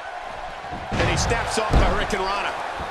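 A wrestler slams down hard onto a wrestling ring mat.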